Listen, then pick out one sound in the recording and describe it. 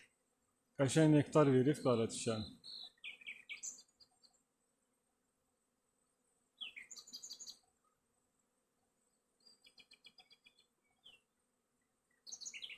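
Bees buzz softly around a hive entrance.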